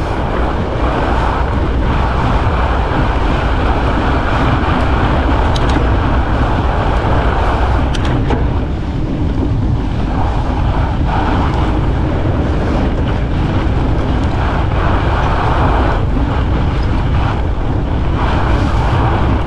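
Bicycle tyres crunch and hiss over packed snow.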